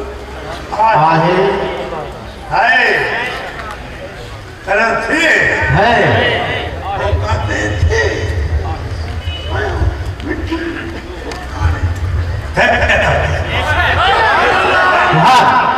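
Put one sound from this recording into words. An elderly man speaks with passion into a microphone, heard through loudspeakers with an outdoor echo.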